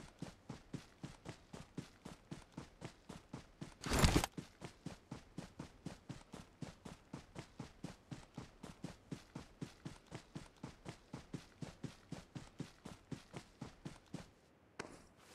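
Quick footsteps thud steadily on grass as a character runs.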